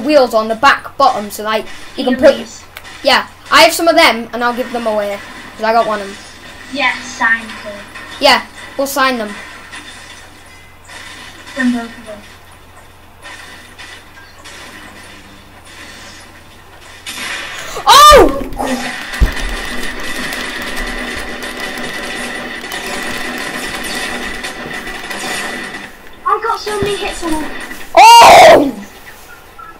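Video game sounds play from a television speaker.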